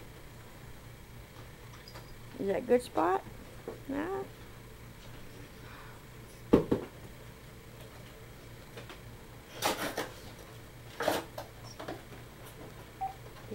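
A cat rolls and scuffles on a carpet.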